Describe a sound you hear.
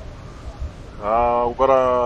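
A young man speaks loudly into a close microphone.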